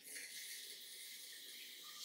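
A glass shower door swings open.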